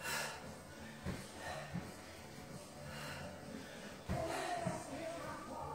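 Feet thud on a rubber floor during lunges.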